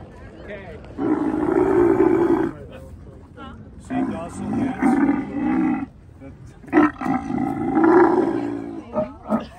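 A camel groans and bellows loudly nearby.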